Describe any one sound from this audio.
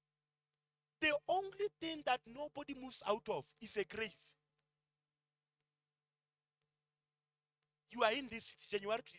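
A man speaks with animation into a microphone, heard through a loudspeaker, pausing between phrases.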